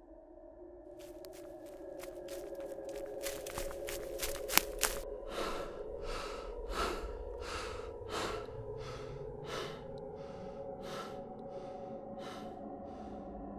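Footsteps crunch slowly on grass.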